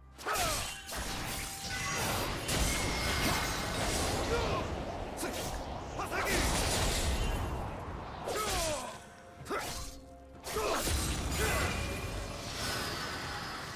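Fantasy battle sounds of spells whooshing and blades clashing play rapidly.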